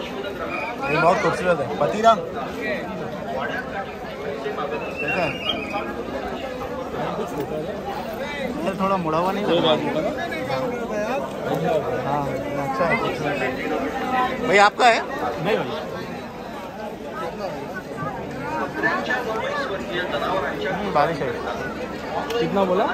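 A crowd of men talk and call out over one another close by.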